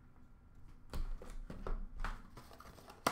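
A small package is set down on a glass shelf with light knocks.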